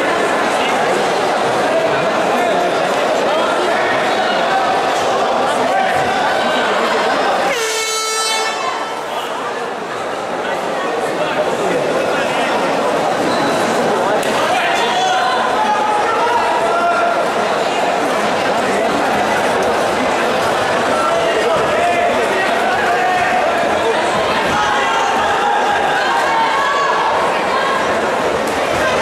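A large indoor crowd chatters and shouts in an echoing hall.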